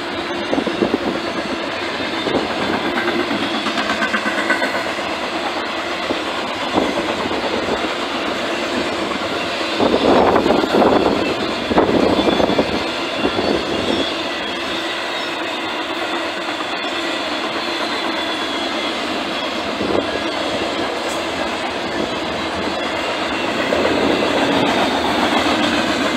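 A long freight train rumbles and clatters steadily along the tracks nearby.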